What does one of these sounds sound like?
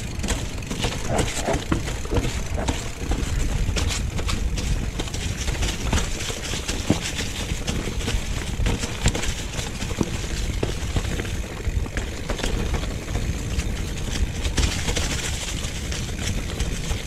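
A bicycle frame clatters over bumps.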